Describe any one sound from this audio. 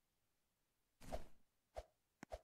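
A toy figure thuds as it hits the ground.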